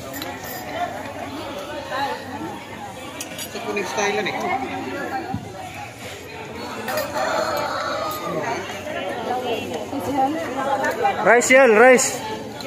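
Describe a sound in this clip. A woman talks nearby.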